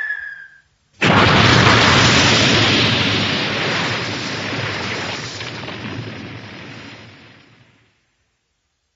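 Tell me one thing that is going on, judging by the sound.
A loud rushing crash sounds and slowly dies away.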